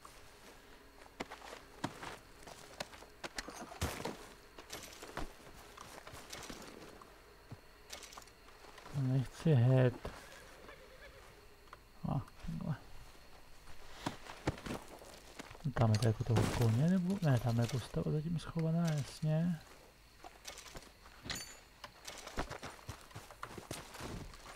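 Clothing rustles as a body is searched.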